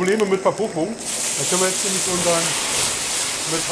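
Flames whoosh up from a pan.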